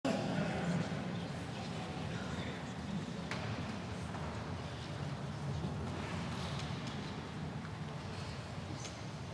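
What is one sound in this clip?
A crowd murmurs and shuffles softly in a large echoing hall.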